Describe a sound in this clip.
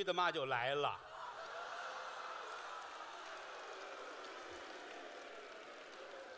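An audience laughs and applauds in a large hall.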